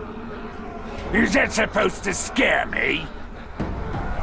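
A rasping orc voice answers with a sneer.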